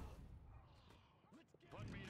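A laser beam fires with a sharp zap.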